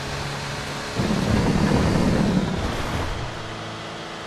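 Truck tyres rumble loudly over a wooden bridge.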